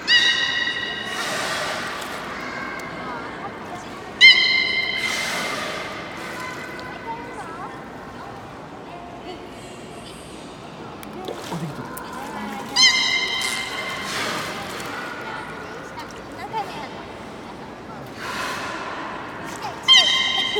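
Water splashes and laps as a beluga whale moves at the surface.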